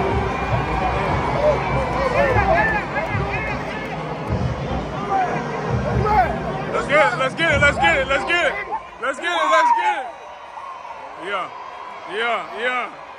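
Men shout and whoop with excitement nearby.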